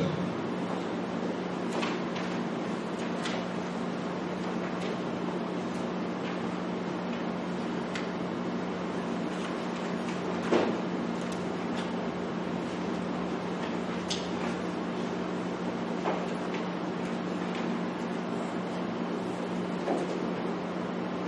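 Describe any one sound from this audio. Paper pages rustle and turn.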